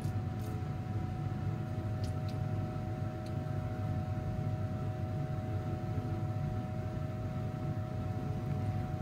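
Liquid trickles steadily into a glass jar.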